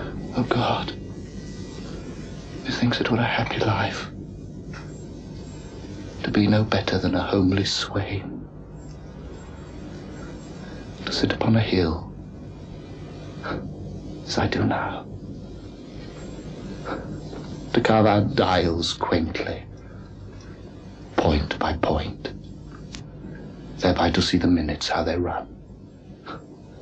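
A man speaks close by in a halting, tearful voice, with long pauses.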